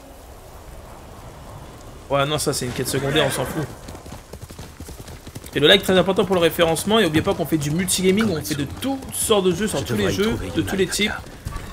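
Horse hooves clop on a dirt path.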